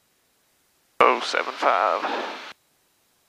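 A young man speaks briefly over a headset intercom.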